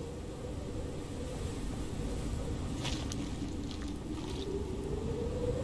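A knife cuts into an animal carcass with wet, tearing sounds.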